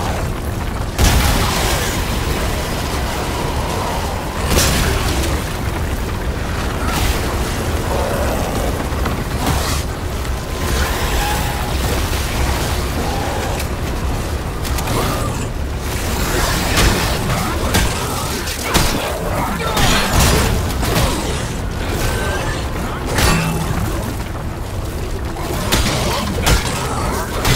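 Loud gunshots bang now and then.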